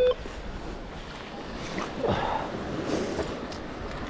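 A metal scoop digs into wet sand.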